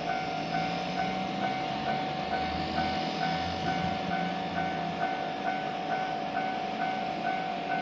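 A railway crossing bell rings quickly and steadily.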